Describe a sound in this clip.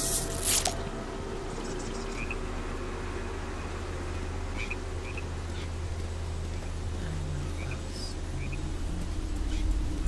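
A small pig's hooves patter lightly over grass and dirt.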